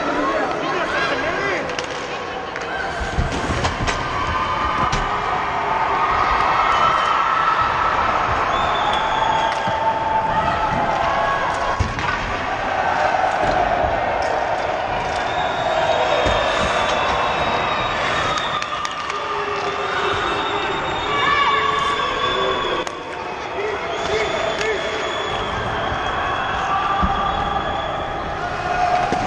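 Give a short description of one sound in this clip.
Young players shout and call out across a large echoing rink.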